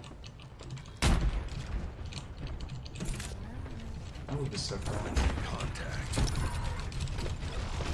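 A sniper rifle fires sharp, loud shots.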